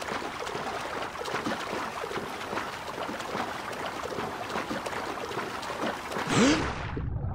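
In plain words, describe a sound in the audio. Water splashes as a swimmer strokes at the surface.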